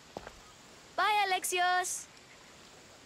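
A young boy calls out in a high voice.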